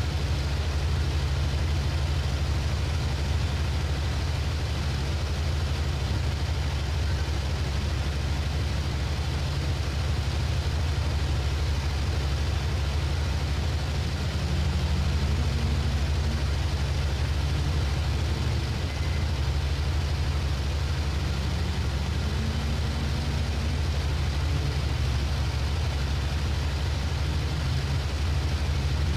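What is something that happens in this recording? A propeller engine drones steadily with a deep, rumbling roar.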